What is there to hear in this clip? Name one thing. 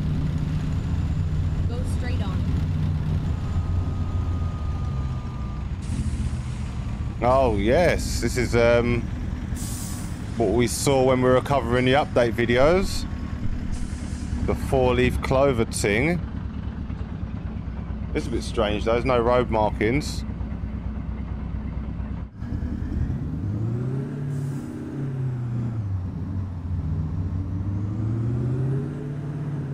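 A truck engine rumbles low and steady, then revs up and down.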